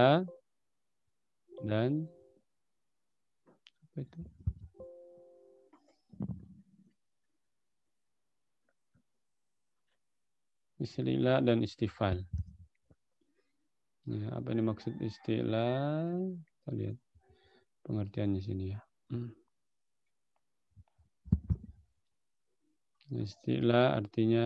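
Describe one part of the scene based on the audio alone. A man speaks calmly through a microphone, reciting and explaining in a measured voice.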